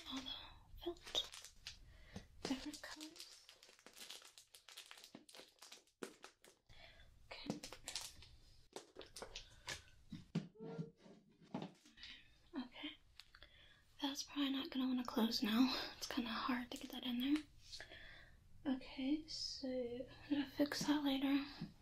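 Soft items rustle as hands handle them.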